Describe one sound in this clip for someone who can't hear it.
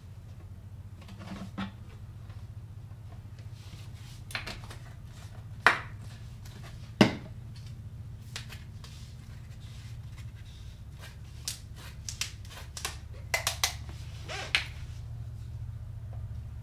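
A plastic bottle rattles and clicks as it is handled.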